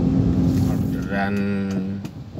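A man speaks up close, calmly.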